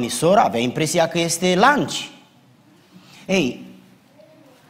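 A middle-aged man speaks with animation into a microphone in a large echoing room.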